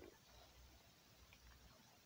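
Small coins chime as they are collected.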